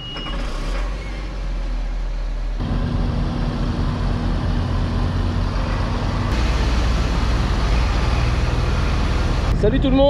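A tractor's diesel engine rumbles steadily and grows louder as the tractor drives past.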